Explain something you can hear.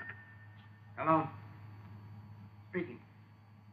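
An elderly man speaks briefly on a phone.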